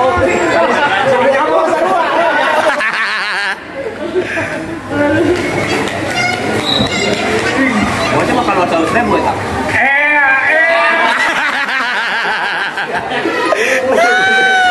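Several young men talk and laugh loudly close by.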